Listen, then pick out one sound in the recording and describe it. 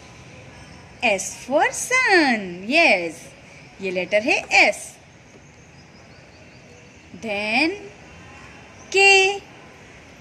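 A young girl speaks clearly and brightly, close by.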